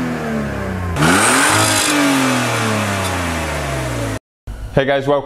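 A car exhaust roars as the engine revs.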